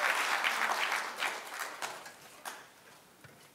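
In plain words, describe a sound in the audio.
An audience applauds in a large hall, then fades.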